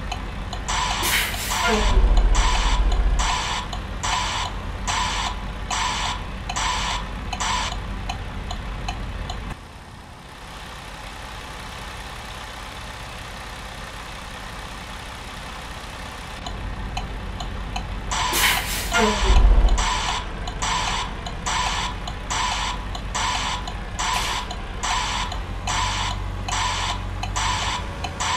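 A turn signal ticks steadily and quickly.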